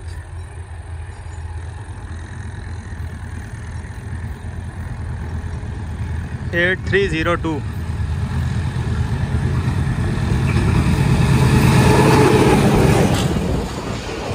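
A diesel locomotive approaches and roars past.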